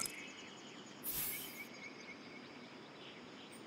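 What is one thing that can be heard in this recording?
A bright game reward chime rings out with a shimmering swoosh.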